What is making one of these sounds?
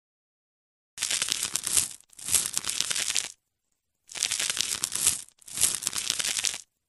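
A knife scrapes in rough bursts.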